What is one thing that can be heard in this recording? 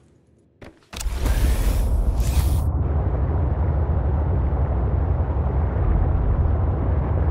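A heavy diving machine's engine rumbles loudly and deeply underwater.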